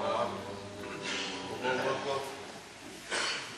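A young man chants in a drawn-out melodic voice through a microphone and loudspeakers, in a reverberant hall.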